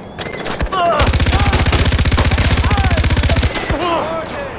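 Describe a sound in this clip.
A rifle fires a long, rapid burst of shots.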